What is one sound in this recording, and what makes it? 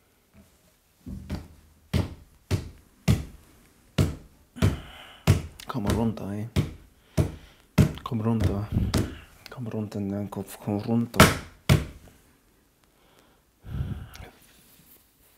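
A man speaks nearby in short, halting bursts.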